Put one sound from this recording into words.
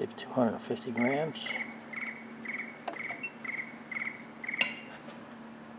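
An electronic balance beeps repeatedly in short, even pulses.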